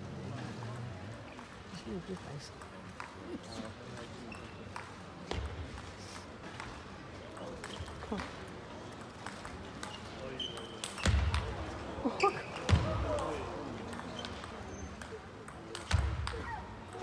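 A table tennis ball clicks back and forth on paddles and the table in a quick rally.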